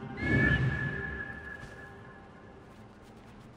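An eagle lets out a loud, sharp screech that slowly fades.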